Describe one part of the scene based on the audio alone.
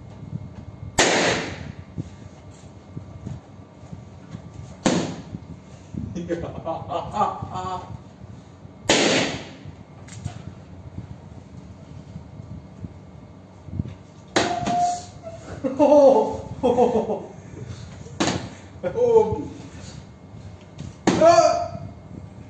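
Balloons pop loudly, one at a time.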